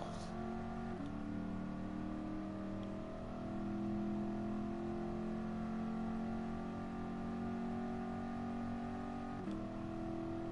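A car engine drops in pitch briefly as the gears shift.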